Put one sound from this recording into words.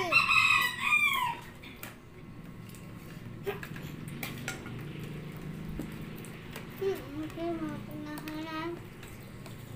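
A young child talks brightly nearby.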